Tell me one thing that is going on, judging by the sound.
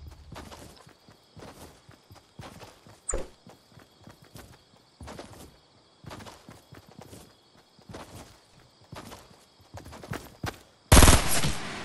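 Footsteps run in a video game.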